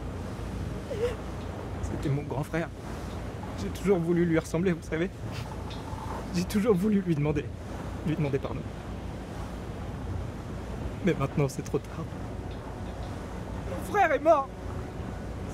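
A young man speaks quietly and sadly, close by.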